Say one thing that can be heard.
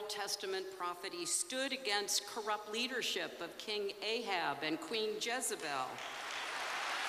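An older woman speaks calmly into a microphone in a large hall.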